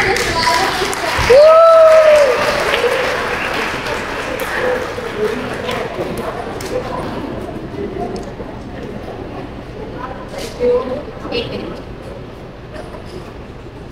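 Several women talk softly close by.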